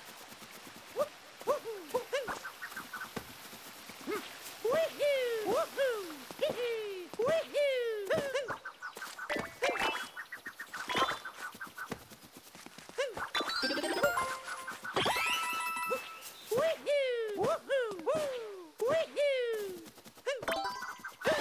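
Quick footsteps patter across the ground.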